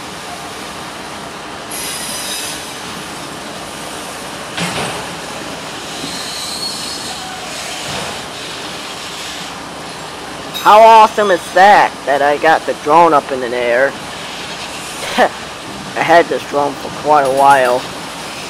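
Freight cars rumble and clatter past on the rails.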